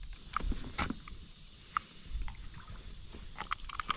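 A fishing reel whirs and clicks as it is wound.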